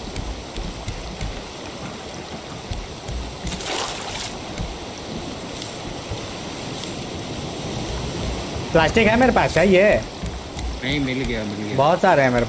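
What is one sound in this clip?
Sea waves wash softly against a wooden raft.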